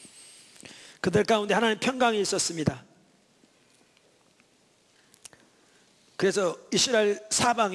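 An elderly man speaks steadily into a microphone, heard through a loudspeaker, with pauses between phrases.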